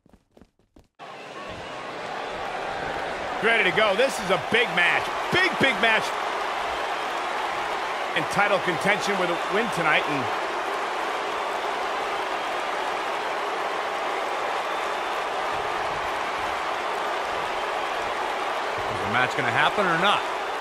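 A large crowd cheers and roars steadily in a big echoing arena.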